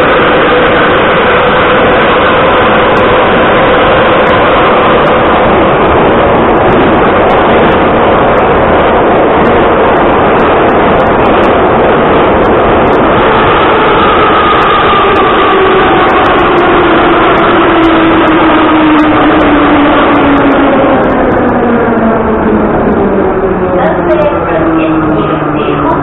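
A metro train rumbles and roars loudly through a tunnel.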